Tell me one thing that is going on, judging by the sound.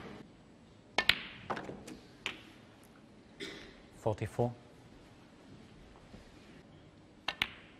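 Snooker balls click sharply against each other.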